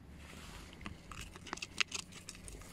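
Soil crunches and rustles as a gloved hand digs through it.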